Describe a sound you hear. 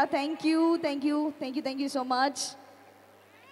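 A young woman speaks with animation into a microphone, heard through loudspeakers.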